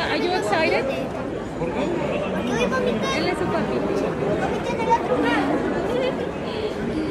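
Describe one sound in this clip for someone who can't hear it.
A crowd murmurs in an echoing hall.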